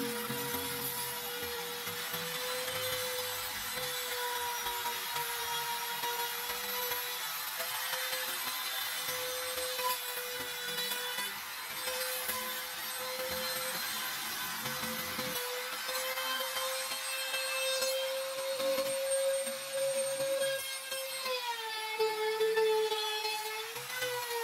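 An electric router whines steadily as it cuts through wood, its pitch dipping under load.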